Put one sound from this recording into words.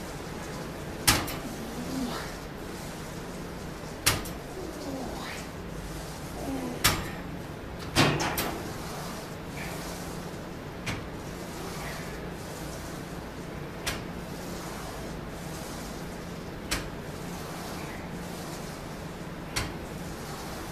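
Weights of an exercise machine clank with each repetition.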